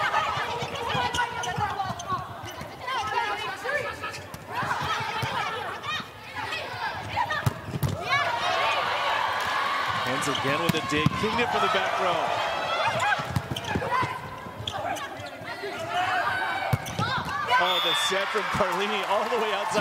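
A large crowd cheers and shouts in an echoing arena.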